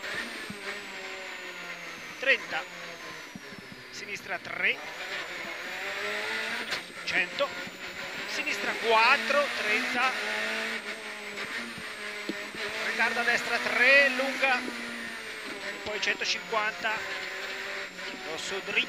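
A rally car engine roars and revs hard up and down through the gears, heard from inside the car.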